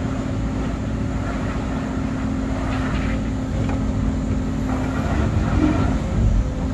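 An excavator engine rumbles steadily from inside the cab.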